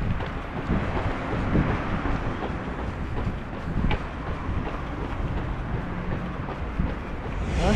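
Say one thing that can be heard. Footsteps of a runner patter on pavement.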